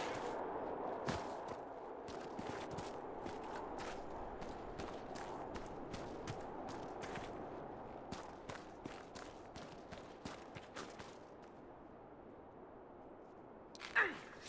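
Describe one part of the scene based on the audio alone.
Footsteps crunch through snow at a run.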